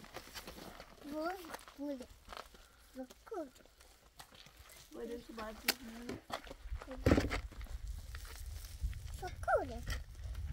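A young girl speaks nearby in a lively voice.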